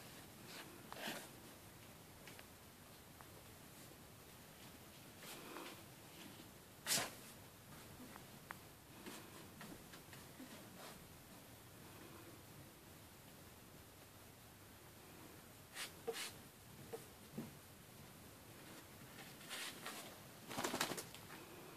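Small puppies tumble and scuffle on soft bedding.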